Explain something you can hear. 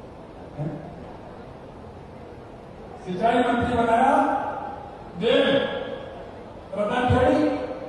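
A middle-aged man speaks forcefully into a microphone over loudspeakers, in bursts with pauses.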